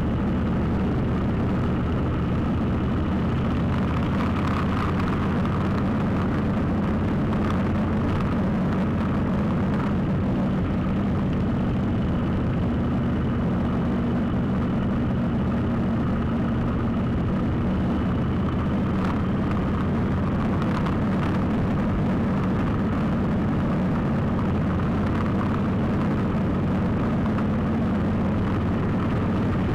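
A motorcycle engine drones steadily at speed.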